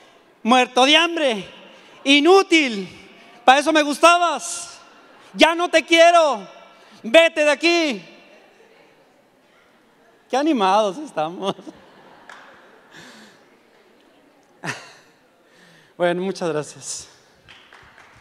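A man speaks loudly and with animation through a microphone in a large echoing hall.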